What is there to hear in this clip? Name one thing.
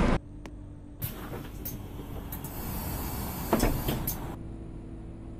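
Bus doors hiss and clunk open.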